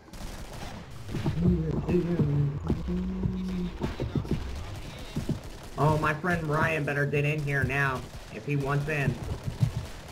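A pistol fires repeated sharp shots.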